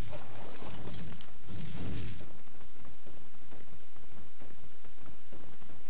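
A large creature's feet thud on sandy ground.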